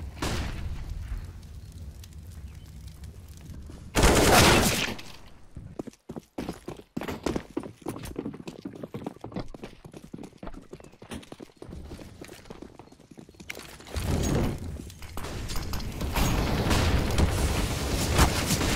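Rifle shots crack in bursts.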